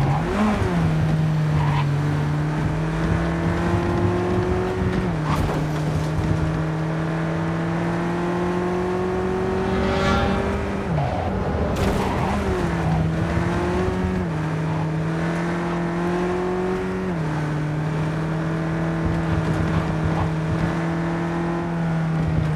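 A car engine hums steadily and shifts through gears as it speeds along.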